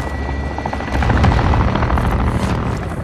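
A large explosion booms nearby.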